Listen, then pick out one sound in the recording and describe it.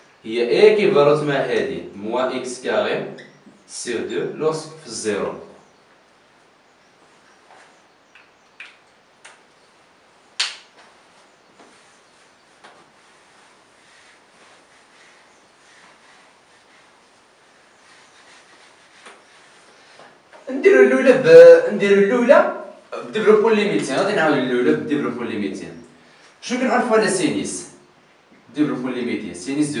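A man speaks calmly, close by, as if explaining.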